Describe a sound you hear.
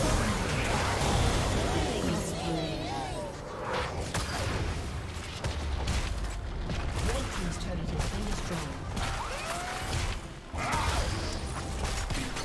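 Magic spell effects whoosh, crackle and burst in a fast fight.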